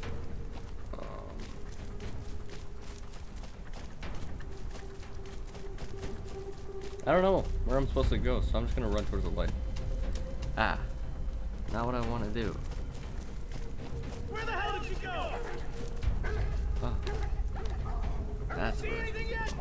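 Footsteps crunch through dry leaves and undergrowth.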